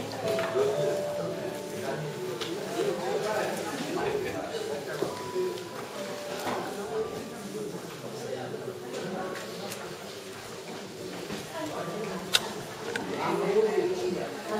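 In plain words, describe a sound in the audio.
Paper gift bags rustle as they are handled.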